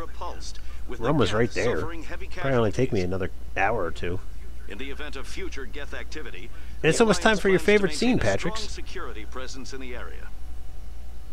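A man talks into a microphone nearby.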